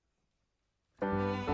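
A cello begins to play a sustained note.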